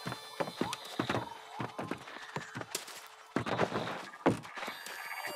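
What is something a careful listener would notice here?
Heavy footsteps thud on wooden planks.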